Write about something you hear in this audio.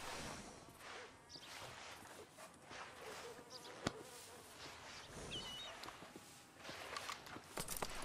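A horse's hooves clop on a dirt road.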